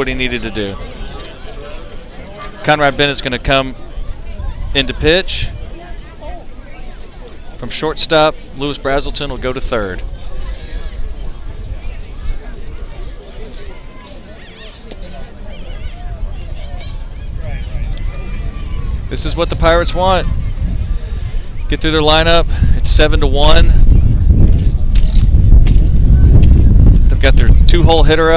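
A crowd murmurs softly in the stands outdoors.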